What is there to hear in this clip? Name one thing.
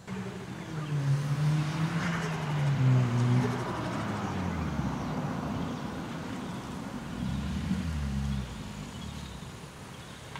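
A car engine hums and revs as a car drives slowly past.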